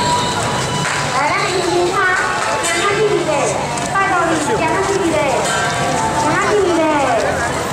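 Many feet shuffle along a paved street.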